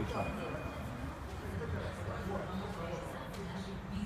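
A woman's feet thud onto a rubber floor.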